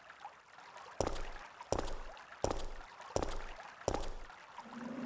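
Footsteps climb stone stairs with slow, even thuds.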